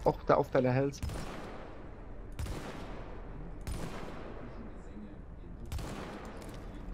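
Rifle shots crack and echo one after another.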